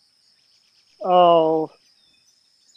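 A man calls out briefly nearby.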